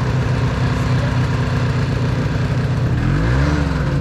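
A snowmobile engine idles with a low, steady rumble.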